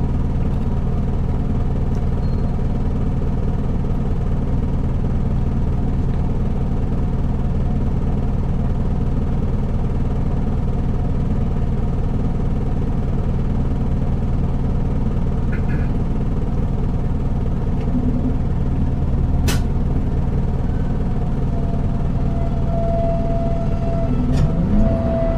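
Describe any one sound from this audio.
A diesel city bus engine idles with a low rumble.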